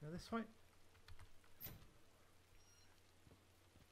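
A metal door is pushed open with a thud.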